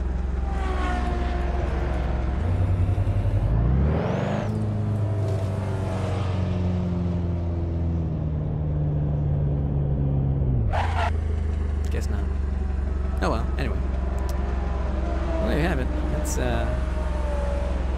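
A car engine revs up and down as it drives.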